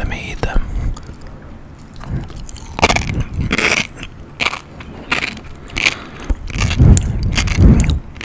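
A man chews food close to a microphone with wet, crunchy mouth sounds.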